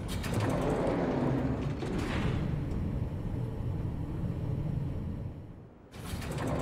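An elevator rumbles and hums as it descends.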